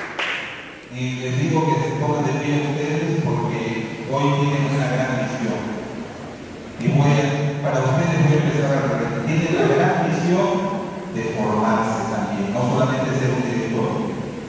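A man speaks with feeling into a microphone, heard through loudspeakers in an echoing hall.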